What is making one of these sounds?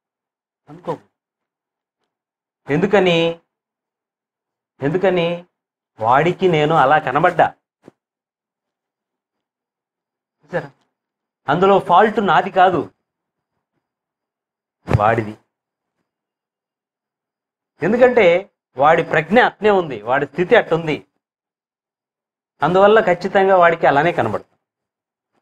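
A man speaks into a microphone in short phrases, with pauses between them.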